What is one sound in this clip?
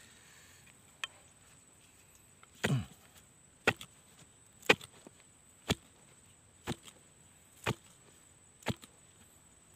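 A wooden tool thuds into soil again and again.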